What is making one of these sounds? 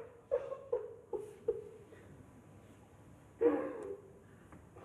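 A man sobs and gasps close by.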